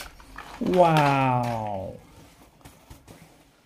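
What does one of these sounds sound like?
A plastic toy truck clatters as it is set down.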